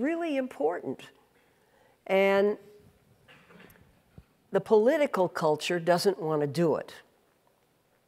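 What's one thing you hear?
An elderly woman speaks calmly into a clip-on microphone.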